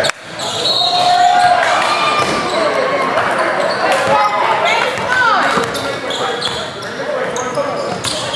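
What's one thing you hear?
Spectators and players call out in a large echoing gym.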